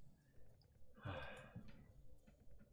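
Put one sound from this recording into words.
A young man talks with animation into a nearby microphone.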